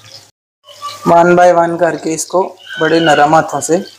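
Metal tongs clink against a frying pan.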